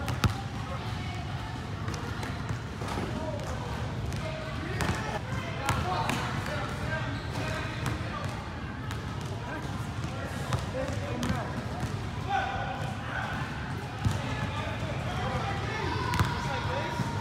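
A basketball bounces on a hard floor with sharp echoing thuds.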